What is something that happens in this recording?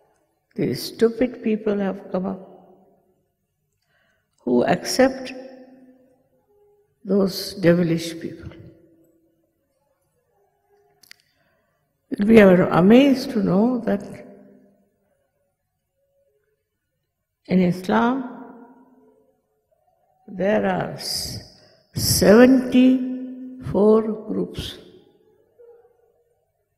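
An elderly woman speaks slowly and calmly into a microphone, in short phrases with pauses.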